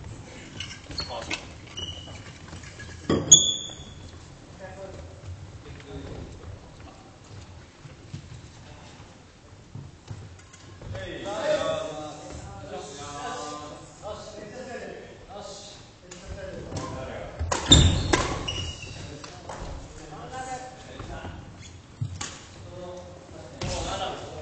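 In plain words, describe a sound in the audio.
Young men talk and call out to each other, echoing in the hall.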